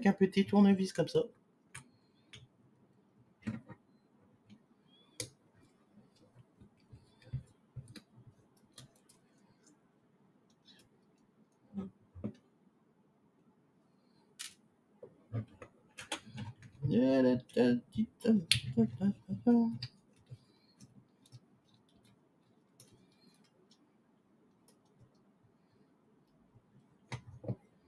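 Small plastic and metal parts click and tap as they are handled.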